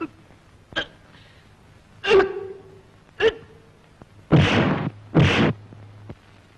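Punches land with sharp thuds during a fight.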